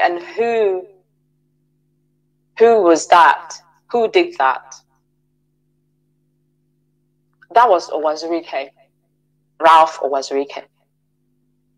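A woman speaks calmly in short phrases.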